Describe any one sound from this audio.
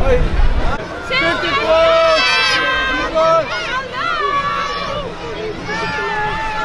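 Children shout and cheer excitedly.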